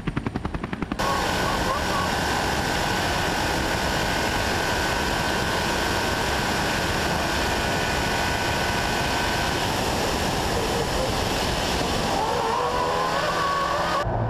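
A car engine roars at high speed.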